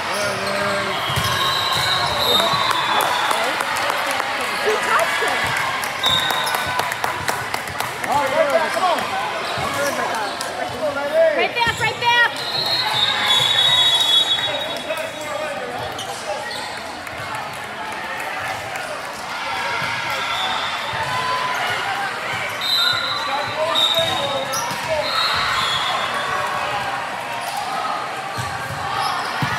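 Young women chatter and call out in a large echoing gym.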